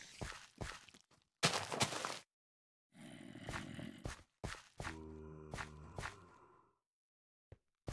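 Dirt crunches in short bursts as blocks are dug.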